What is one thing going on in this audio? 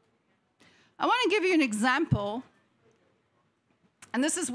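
A woman speaks calmly into a microphone.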